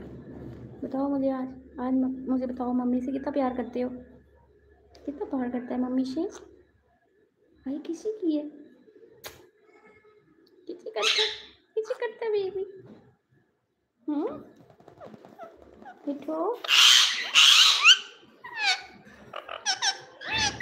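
A rose-ringed parakeet talks in a mimicked human voice.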